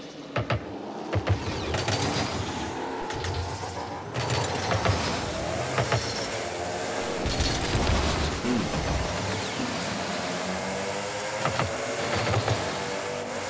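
A ball thuds when a car hits it.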